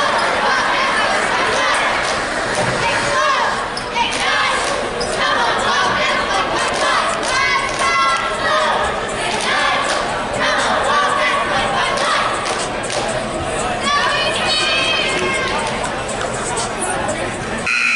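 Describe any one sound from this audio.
Cheerleaders chant and shout loudly.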